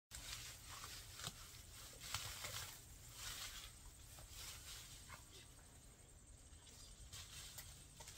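Plants rustle as a woman pulls weeds.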